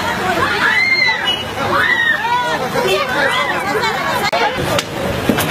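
A crowd of women shout and scream close by.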